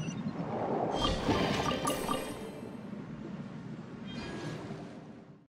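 A bright magical chime sparkles and rings.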